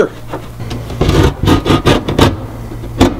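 A man taps with a tool.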